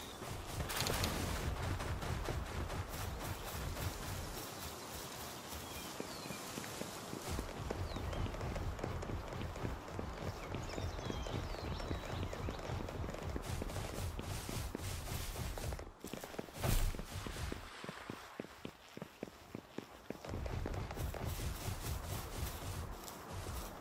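Quick footsteps run over sand and rock.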